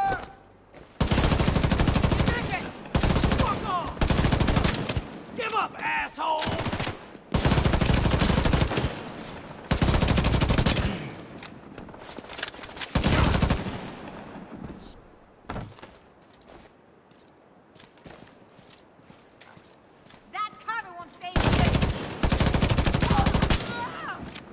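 An automatic rifle fires in loud rapid bursts, close by.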